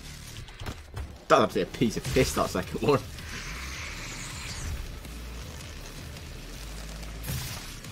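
Flesh tears wetly as a creature is ripped apart.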